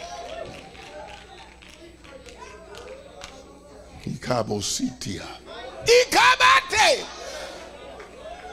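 A man preaches with animation into a microphone, his voice rising to shouts in a large echoing hall.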